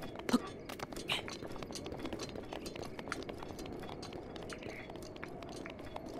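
Quick scraping footsteps patter over rock.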